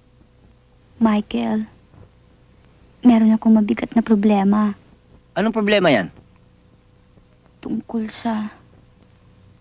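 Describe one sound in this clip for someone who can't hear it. A young woman answers with distress, close by.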